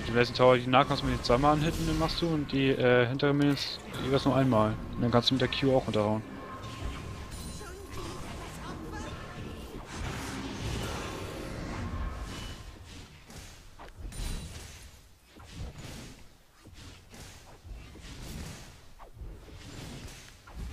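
Game spells and weapon strikes clash in quick bursts.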